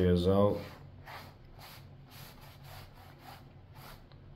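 A scraper rasps across a painted surface in short, repeated strokes.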